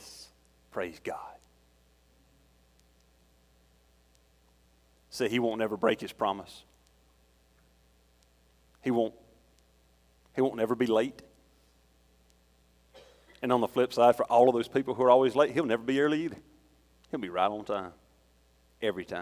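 A middle-aged man speaks with feeling through a microphone, pausing often, in a room with a slight echo.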